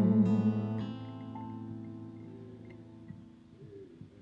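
A congregation sings a long final note that slowly fades.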